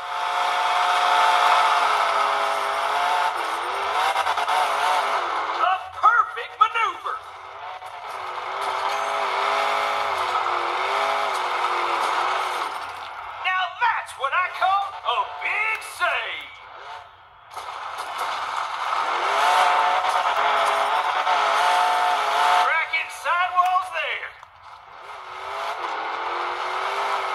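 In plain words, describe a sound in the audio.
A monster truck engine roars and revs loudly through a small speaker.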